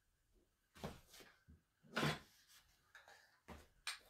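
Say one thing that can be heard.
Objects knock and rustle as they are handled close by.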